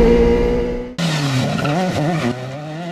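A rally car engine revs hard as the car pulls away.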